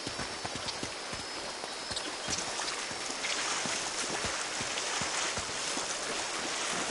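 A stream trickles and splashes nearby.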